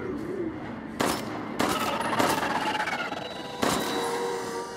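Gunshots ring out loudly indoors.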